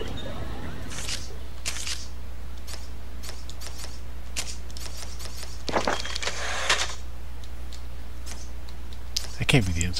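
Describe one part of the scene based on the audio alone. Menu selections click softly, one after another.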